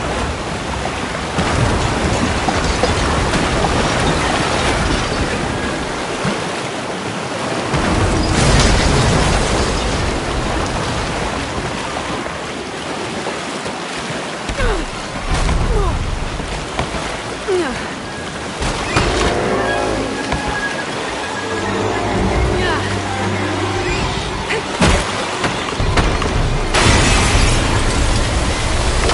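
Floodwater rushes and roars loudly all around.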